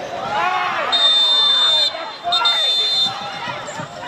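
A referee's whistle blows sharply twice, outdoors.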